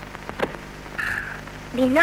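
A boy cries out loudly.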